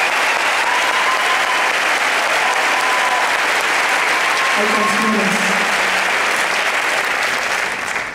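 A rock band plays loudly in a large hall, heard from far back.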